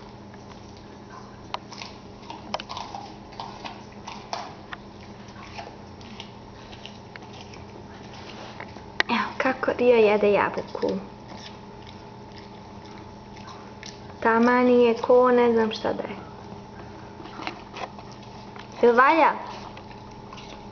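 A puppy gnaws and chews on a toy nearby.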